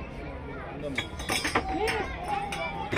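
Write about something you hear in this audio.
A ball knocks against glass cups with a sharp clatter.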